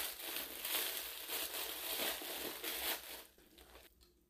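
Plastic wrapping rustles as it is handled.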